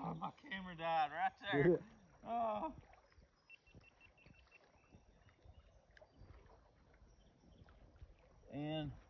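Water laps and splashes softly.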